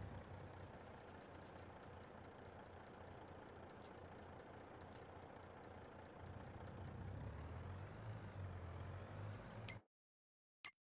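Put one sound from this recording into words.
A heavy truck engine rumbles steadily and grows louder.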